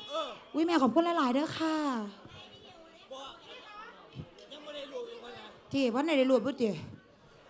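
A woman sings loudly into a microphone over a loudspeaker.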